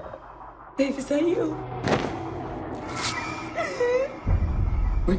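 A woman whimpers through a hand covering her mouth.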